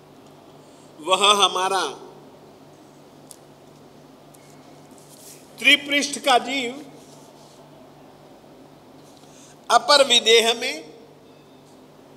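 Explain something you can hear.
An elderly man chants verses through a microphone in short bursts.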